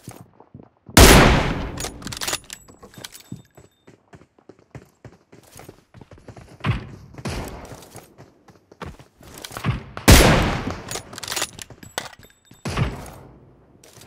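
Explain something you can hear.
Rifle shots crack loudly, each followed by a short echo.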